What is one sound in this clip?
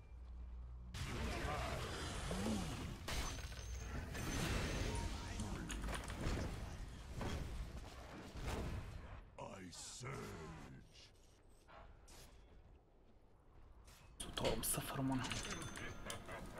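Spell blasts and clashes from a video game crackle and boom.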